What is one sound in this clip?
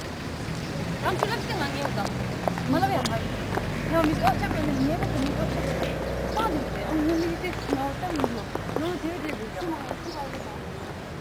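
Young women chat casually close by.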